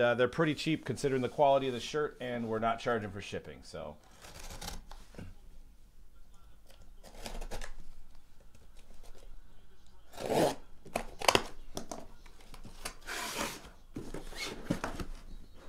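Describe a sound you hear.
A cardboard box scrapes and thumps as hands handle it.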